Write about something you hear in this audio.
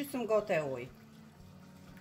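Water pours into a bowl.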